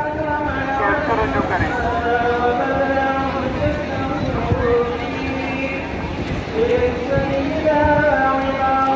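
A large crowd murmurs and shouts.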